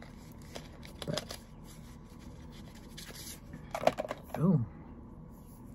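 A young man speaks quietly close to a microphone.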